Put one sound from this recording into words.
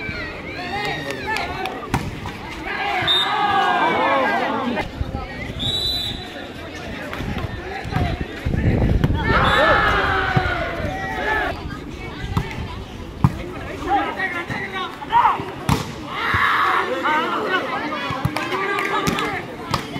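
A volleyball is struck hard with a smack.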